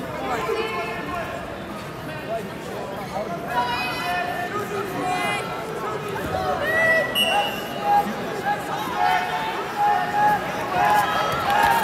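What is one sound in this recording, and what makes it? Spectators shout encouragement in a large echoing hall.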